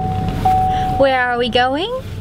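A young woman talks cheerfully, close by.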